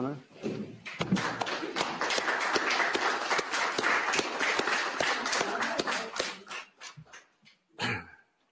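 A crowd applauds in a large echoing room.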